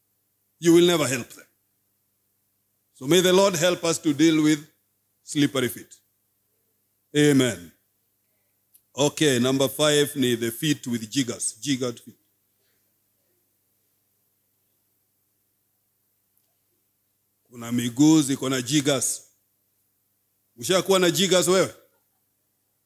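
A man speaks slowly and deliberately into a microphone, with long pauses.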